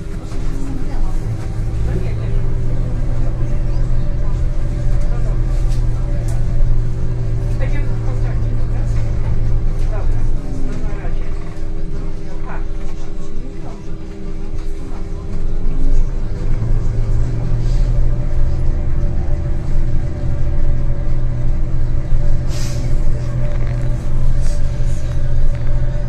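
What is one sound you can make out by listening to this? The bus rattles and creaks as it rolls over the paving.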